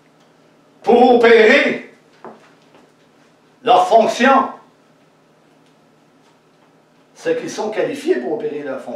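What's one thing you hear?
A middle-aged man speaks with animation, pausing between phrases.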